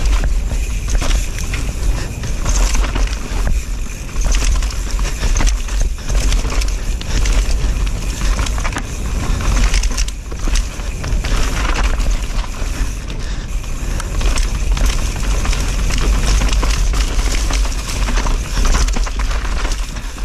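Wind rumbles loudly against a moving rider.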